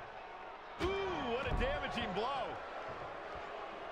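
A body thuds heavily onto a wrestling mat.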